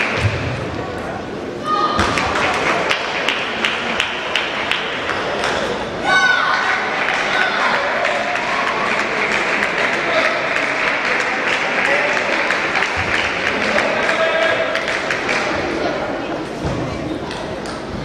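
A crowd of young girls chatters and calls out in the echoing hall.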